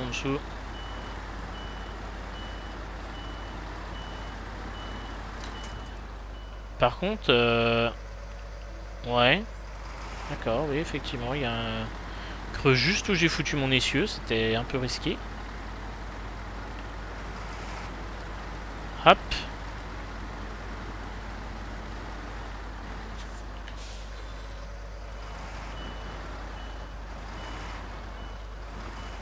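A heavy truck engine rumbles steadily as it crawls over rough ground.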